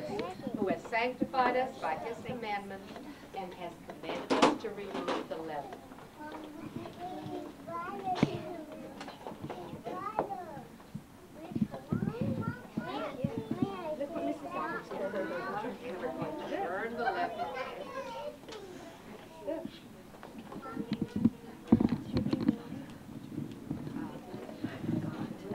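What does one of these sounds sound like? Young children chatter and babble in a room.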